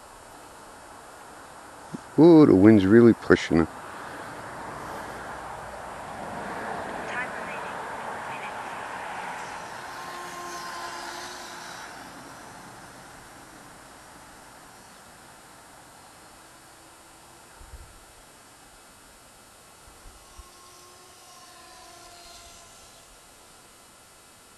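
A small electric motor whirs as a toy vehicle drives over grass and pavement.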